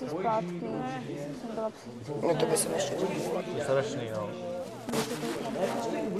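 Young men and a young woman chat casually nearby.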